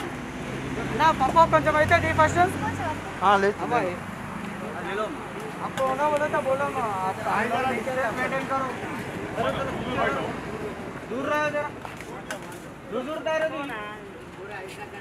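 Several men and women talk nearby.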